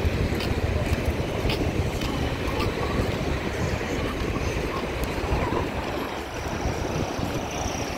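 A car drives past on a dirt road.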